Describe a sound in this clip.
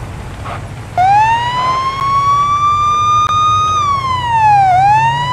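A police car siren wails, rising and falling.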